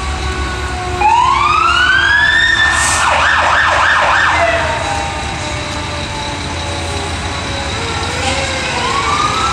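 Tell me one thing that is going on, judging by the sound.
A fire truck siren wails loudly, rising and then yelping rapidly.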